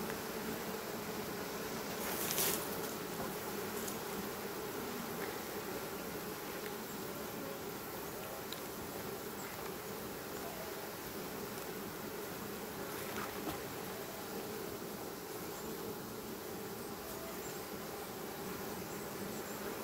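Bees buzz steadily close by.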